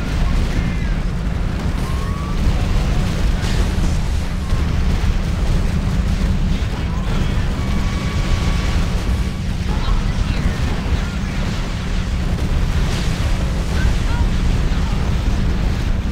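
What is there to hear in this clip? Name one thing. Explosions boom and crackle in a battle.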